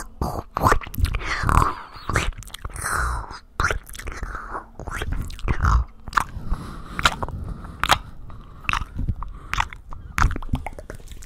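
A young man makes close mouth sounds and clicks into a microphone.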